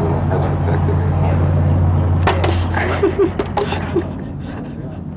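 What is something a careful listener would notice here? A man blows into a small instrument.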